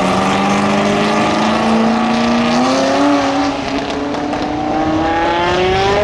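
Car engines roar loudly as they accelerate away, the pitch climbing through the gears.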